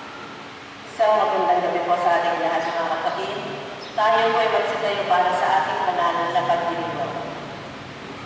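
A man sings through a loudspeaker in a large echoing hall.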